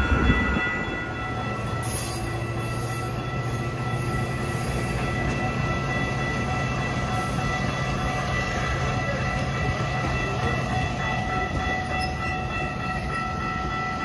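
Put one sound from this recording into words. A diesel locomotive engine hums steadily close by.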